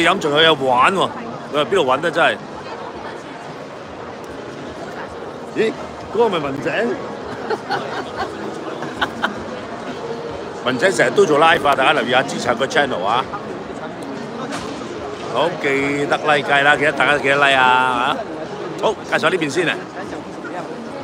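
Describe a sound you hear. A middle-aged man talks close to the microphone with animation.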